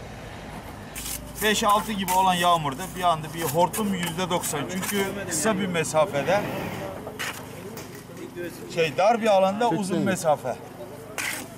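A man talks with animation nearby outdoors.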